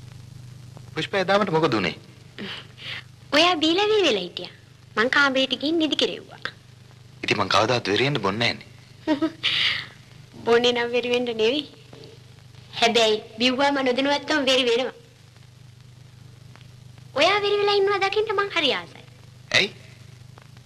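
A young man speaks calmly nearby, in short phrases with pauses.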